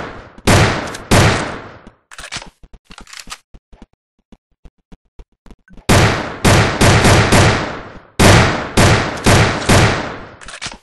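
Loud rifle shots ring out one after another with echoing booms.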